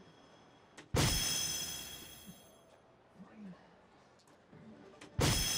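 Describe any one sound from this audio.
An electronic dartboard plays a bright ringing chime that slowly fades.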